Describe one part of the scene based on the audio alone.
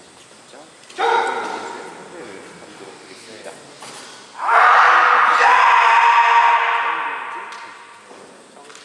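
Fighters give loud, drawn-out shouts in an echoing hall.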